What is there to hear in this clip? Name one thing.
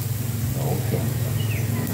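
Metal tongs clink against a grill grate.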